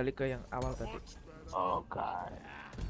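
Crystals shatter with sharp, glassy crashes.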